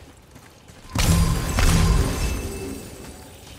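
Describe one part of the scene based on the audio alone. An axe whooshes and strikes with a heavy impact.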